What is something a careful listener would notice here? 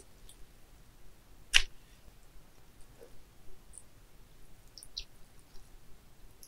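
A young woman bites and chews food with wet, crunchy sounds close to a microphone.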